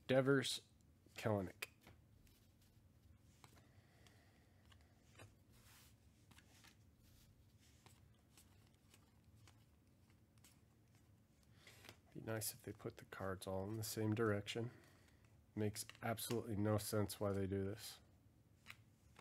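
Trading cards rustle and flick softly as they are sorted by hand.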